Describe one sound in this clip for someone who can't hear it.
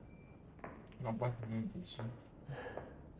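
A young man talks into a close microphone with animation.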